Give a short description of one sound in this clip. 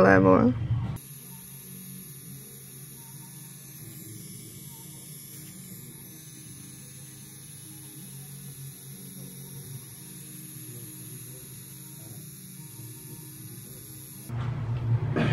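A tattoo machine buzzes steadily.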